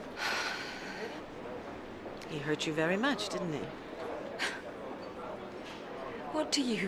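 A woman speaks tensely, close by.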